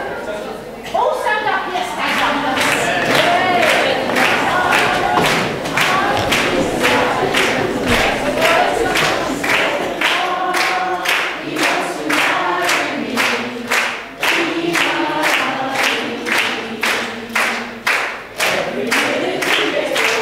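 A crowd sings together in a large echoing hall.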